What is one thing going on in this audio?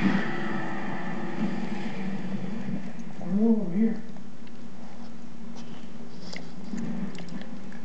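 A small dog wriggles on its back, fur rustling against a carpet.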